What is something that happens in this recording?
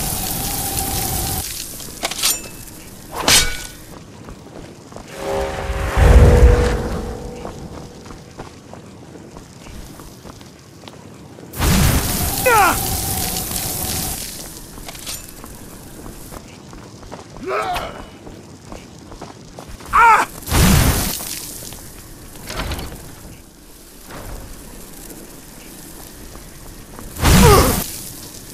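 Magic blasts whoosh and crackle in short bursts.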